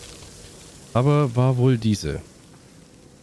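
A man speaks briefly and loudly into a close microphone.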